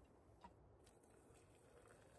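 Water pours from a kettle into a metal mug.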